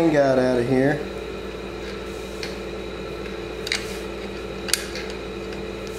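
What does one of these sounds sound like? A wrench clicks against metal parts.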